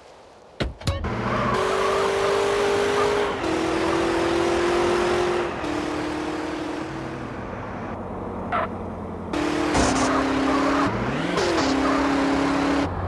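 A car engine starts and revs, shifting through gears as the car speeds up.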